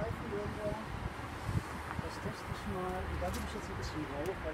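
A hive tool scrapes and clicks against wooden frames.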